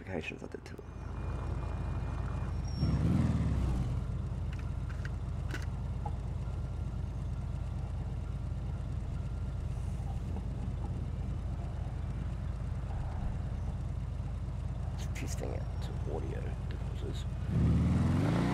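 A quad bike engine idles with a steady low rumble.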